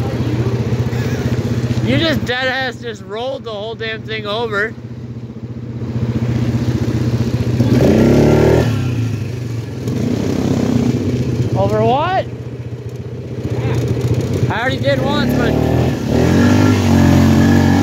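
An ATV engine drones steadily and revs up at times.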